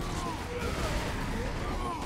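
An explosion booms with a deep rumble.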